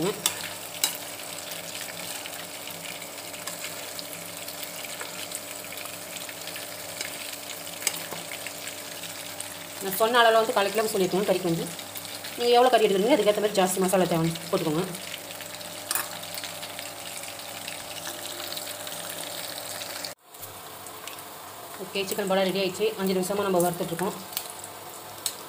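A metal skimmer clinks against the side of a pan.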